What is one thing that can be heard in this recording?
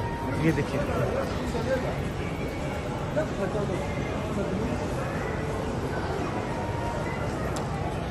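Many voices murmur indistinctly in a large, echoing indoor space.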